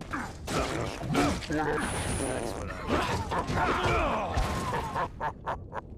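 A man grunts in pain.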